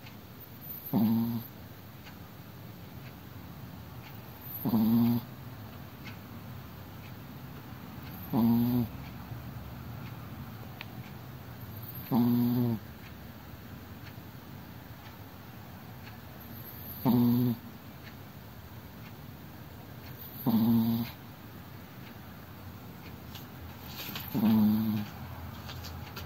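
A sleeping dog snores loudly, close by, in deep rasping snores about every four seconds.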